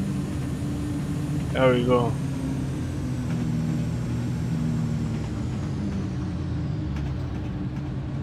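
A train's engine hums steadily while rolling along the tracks.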